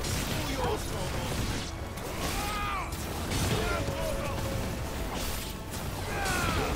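Sword slashes and fiery blasts crash repeatedly.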